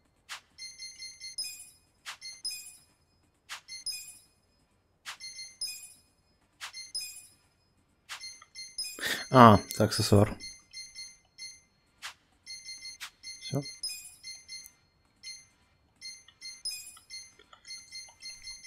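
Short electronic menu clicks and chimes sound in quick bursts, again and again.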